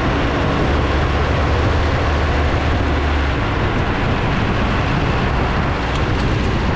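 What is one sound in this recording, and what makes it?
Wind rushes loudly past outdoors.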